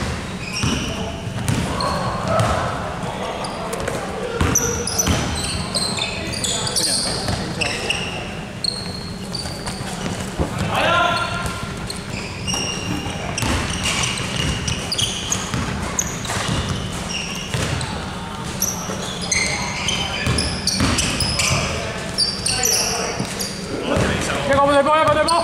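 Young men call out to each other across a large echoing hall.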